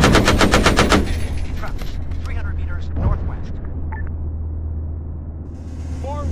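A vehicle explodes with a loud blast.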